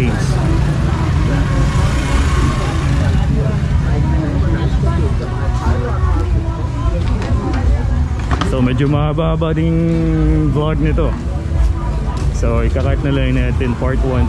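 A lively crowd of people chatters outdoors.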